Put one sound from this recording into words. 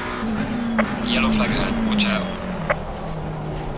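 Tyres squeal under hard braking.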